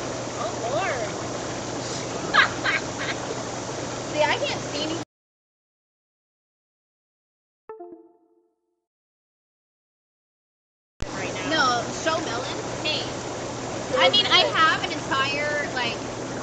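Water bubbles and churns in a hot tub.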